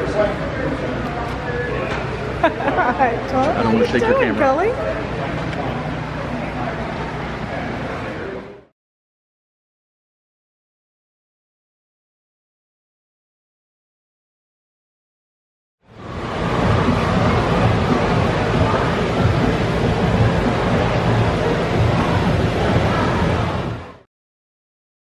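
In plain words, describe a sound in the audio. A crowd of men and women murmurs and chatters in a large echoing hall.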